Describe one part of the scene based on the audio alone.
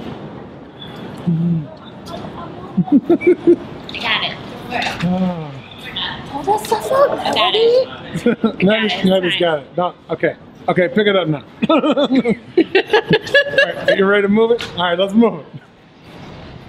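A young woman laughs loudly close by.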